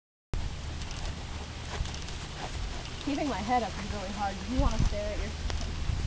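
A horse trots with soft hoofbeats on sand.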